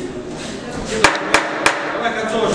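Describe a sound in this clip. Boxing gloves thud as punches land.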